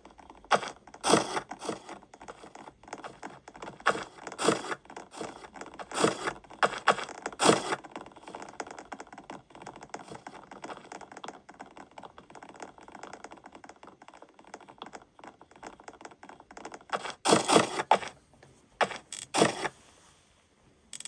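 Game music and chimes play from a small tablet speaker.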